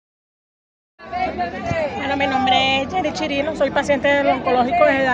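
An elderly woman speaks close up with animation.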